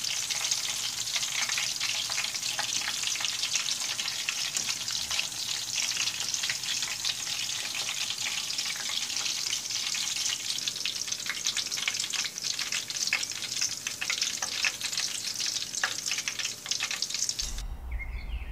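Hot oil sizzles and crackles steadily as food fries.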